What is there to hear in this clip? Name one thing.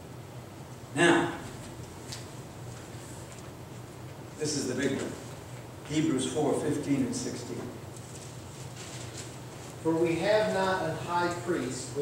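An elderly man speaks slowly and calmly through a microphone in an echoing hall.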